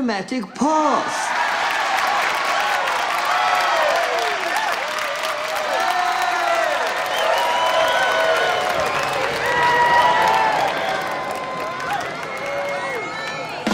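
A large crowd cheers, screams and whistles loudly.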